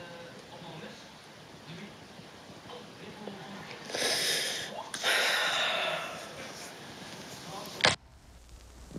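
A young woman sobs and cries close by.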